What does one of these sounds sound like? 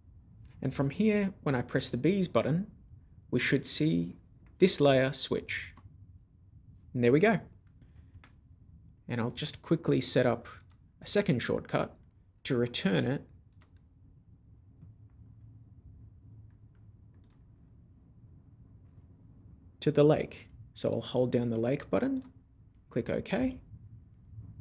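A man talks calmly and clearly into a close microphone, in short phrases with pauses.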